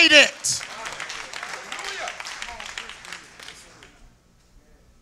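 A large audience cheers and applauds in a big hall.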